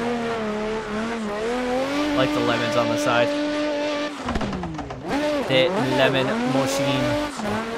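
Tyres screech as a car slides sideways.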